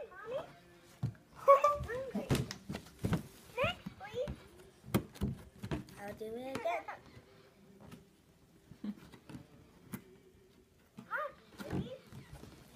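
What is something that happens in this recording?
Cardboard and plastic packaging rustle and clatter as a toy box is opened.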